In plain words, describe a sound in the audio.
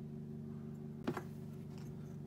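A wooden piece clacks down onto a hard surface.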